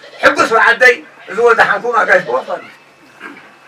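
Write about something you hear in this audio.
A man speaks loudly and close by.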